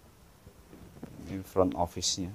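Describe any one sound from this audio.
A second young man speaks quietly nearby.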